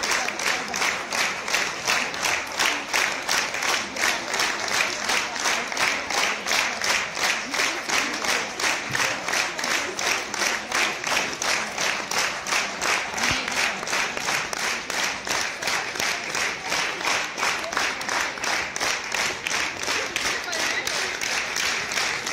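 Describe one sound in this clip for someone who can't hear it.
A large audience claps in steady rhythm, all together, in a big echoing hall.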